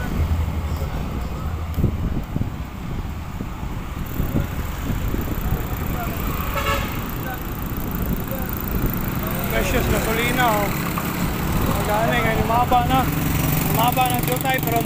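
A motorcycle rides past on a paved road.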